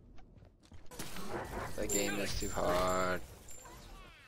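Blades clash and strike repeatedly.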